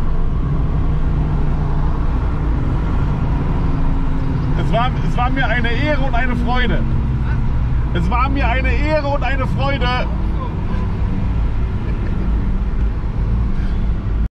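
A car engine drones steadily from inside the car as it slows down.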